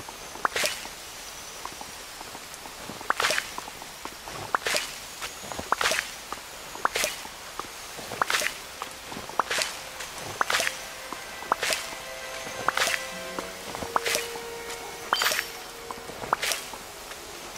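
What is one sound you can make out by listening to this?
Bright chiming sparkles ring out again and again as items are gathered.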